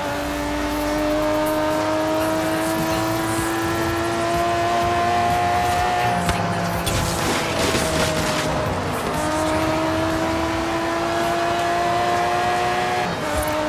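A sports car engine roars at high speed, holding a steady high pitch with a dip and recovery.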